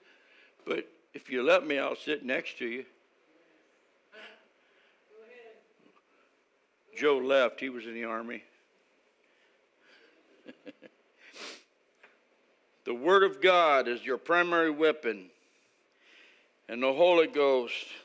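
An older man speaks through a microphone in a pausing, deliberate manner.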